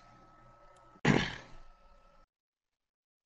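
A short whoosh sounds as a menu selection changes.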